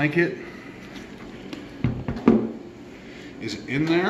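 A metal box knocks down onto a wooden table.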